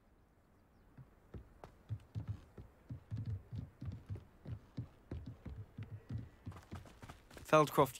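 Footsteps thud on wooden boards and then on the ground.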